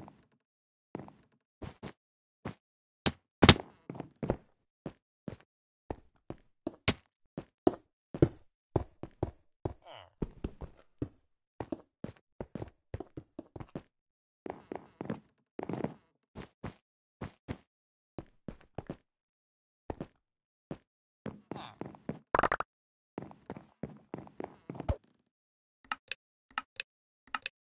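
Game footsteps patter quickly on hard blocks.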